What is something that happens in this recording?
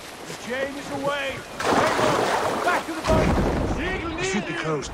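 Water splashes as a man jumps into a river.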